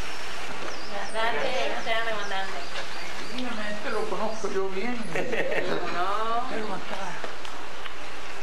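An elderly man talks warmly with people close by.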